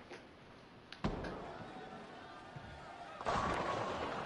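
A bowling ball drops onto a lane and rolls with a low rumble.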